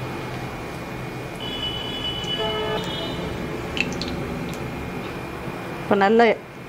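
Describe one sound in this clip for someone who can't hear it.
Oil sizzles softly in a hot pan.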